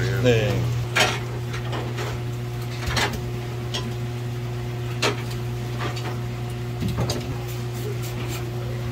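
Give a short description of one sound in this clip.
A knife taps and scrapes on a cutting board.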